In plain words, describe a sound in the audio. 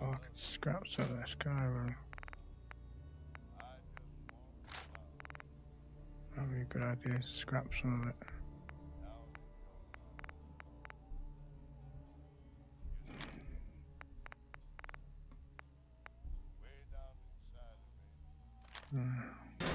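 Short interface clicks tick as a list of items scrolls.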